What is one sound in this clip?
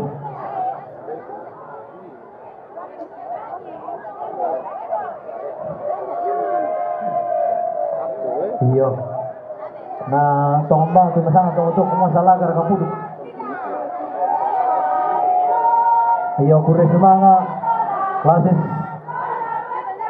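A group of women sing together outdoors.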